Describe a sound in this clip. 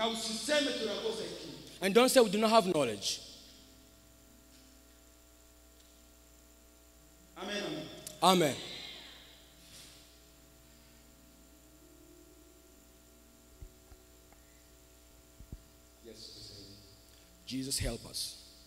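A man speaks loudly through a microphone, with echo in a large hall.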